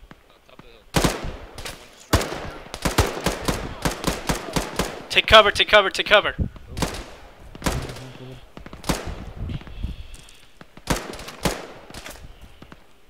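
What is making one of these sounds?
Rifle shots crack in rapid bursts and echo outdoors.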